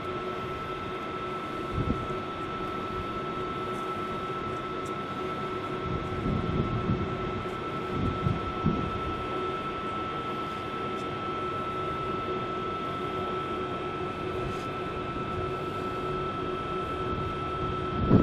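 A boat's engine hums steadily underneath.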